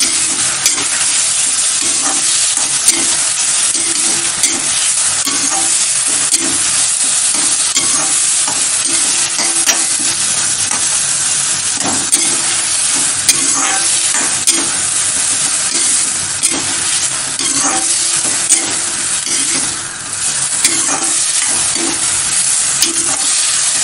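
A metal spatula scrapes and clinks against a metal pan.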